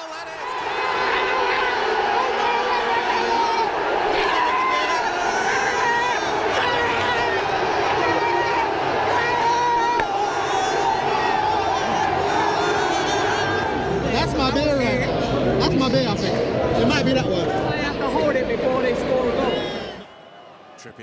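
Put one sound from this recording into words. A large crowd of young men sings and cheers loudly, close by.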